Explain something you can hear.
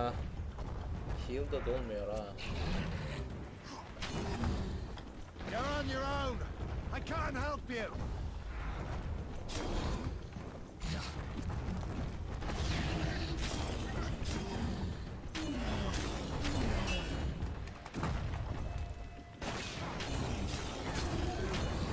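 Blades swing and strike in a fierce fight.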